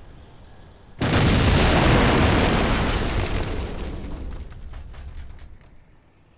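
Wind rushes loudly as a parachute opens, then slowly fades.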